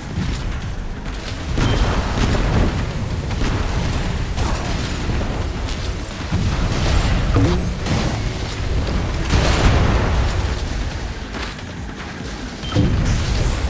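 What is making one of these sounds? A motorboat engine hums steadily.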